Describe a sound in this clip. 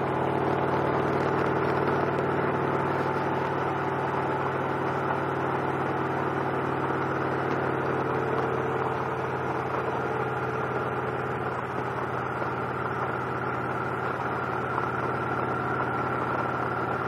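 A V-twin cruiser motorcycle engine hums as it cruises at a steady speed.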